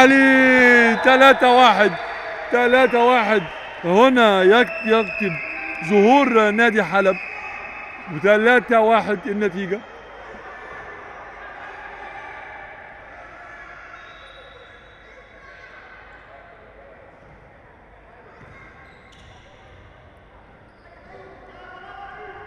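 Players' shoes squeak on a wooden floor in an echoing hall.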